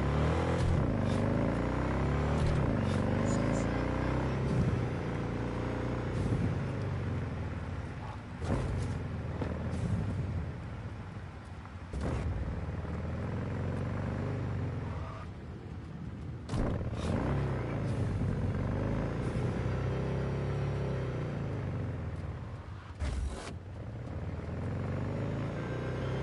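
A motorcycle engine revs up and down as it speeds along.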